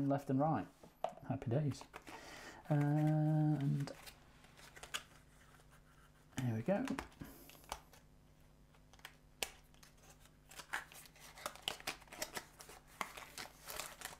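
A cardboard box rustles and scrapes as it is handled and opened.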